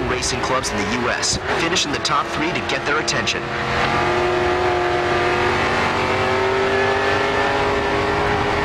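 A car engine revs hard and rises in pitch as it accelerates.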